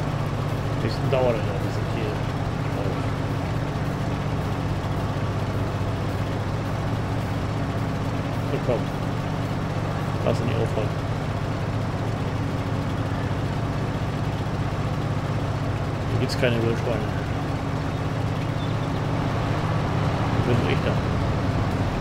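A man speaks briefly into a microphone now and then.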